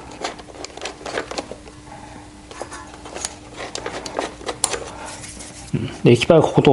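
Metal parts click and clink close by.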